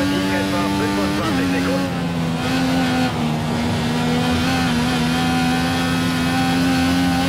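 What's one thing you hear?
A racing car engine whines at high revs, dropping in pitch briefly as it slows and then holding steady.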